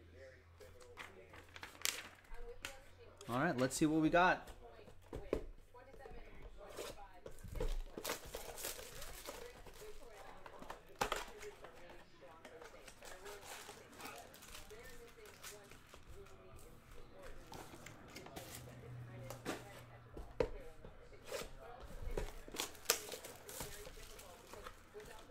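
Plastic wrapping crinkles and rustles as packs are handled.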